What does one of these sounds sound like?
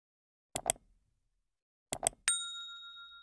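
A mouse button clicks twice in quick succession.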